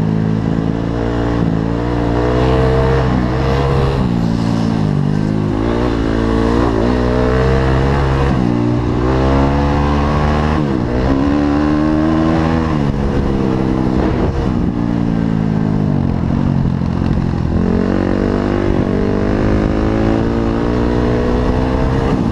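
Tyres crunch over rough dirt.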